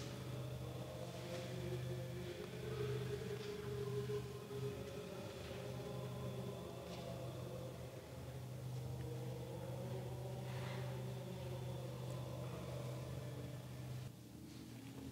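A man chants slowly in a steady voice, echoing in a stone hall.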